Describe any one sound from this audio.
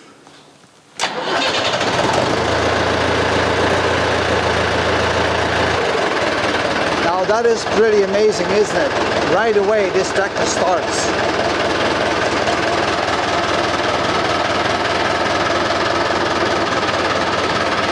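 A tractor engine starts up and runs with a loud, steady rumbling clatter.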